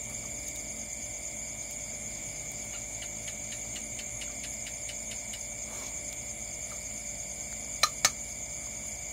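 Chopsticks tap and scrape against a metal plate.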